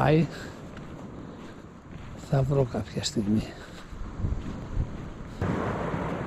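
Footsteps crunch on gravel and dry seaweed.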